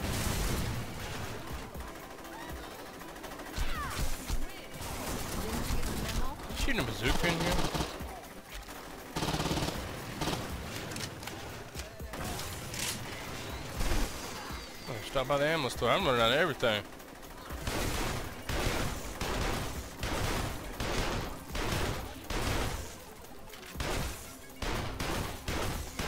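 Gunfire from a video game bursts and rattles.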